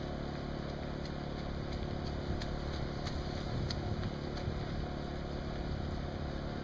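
Footsteps slap on wet pavement as a runner approaches.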